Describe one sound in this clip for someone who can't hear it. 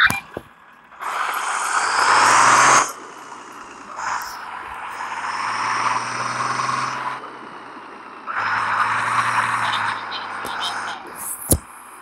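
A bus engine revs up as the bus accelerates, in bursts.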